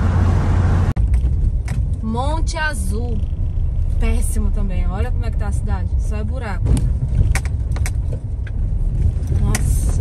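A car rolls slowly over a bumpy dirt road with a low engine hum.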